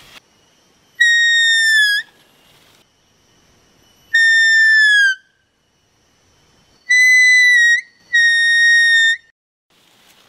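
A woman whistles loud, sharp, falling notes close by, several times.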